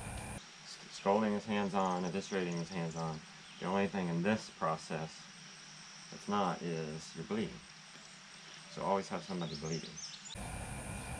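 A bearded man speaks calmly and close by.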